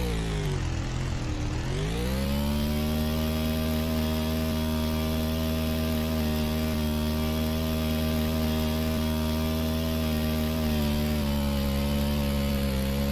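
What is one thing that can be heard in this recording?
A motorbike engine revs up and then hums steadily.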